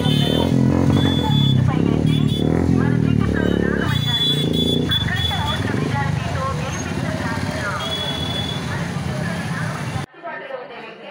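Motorcycle engines rumble and rev loudly as a procession rides past.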